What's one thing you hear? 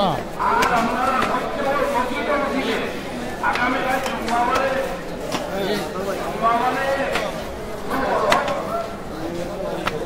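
A crowd of men chants loudly together outdoors.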